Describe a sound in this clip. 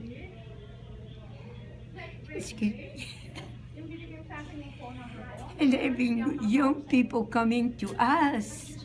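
An elderly woman talks close by with animation.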